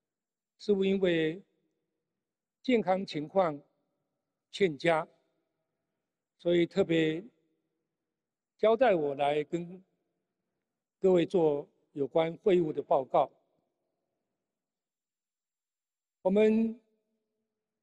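An elderly man speaks slowly and deliberately into a microphone, in short phrases with long pauses.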